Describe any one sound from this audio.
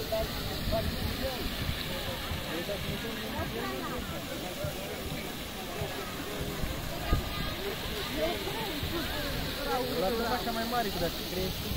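A fountain splashes at a distance.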